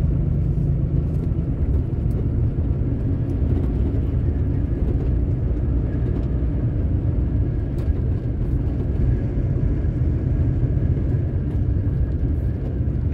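A vehicle's engine rumbles steadily while driving along a road.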